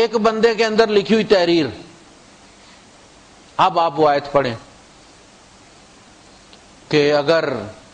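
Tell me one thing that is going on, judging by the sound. A man chants melodically into a microphone in phrases separated by pauses.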